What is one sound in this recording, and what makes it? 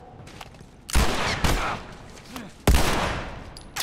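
Gunshots ring out loudly, one after another.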